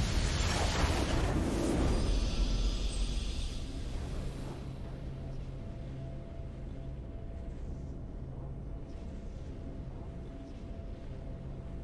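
A triumphant fanfare plays as the match is won.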